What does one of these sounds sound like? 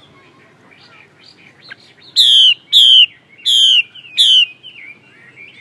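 A songbird twitters softly in short chirps.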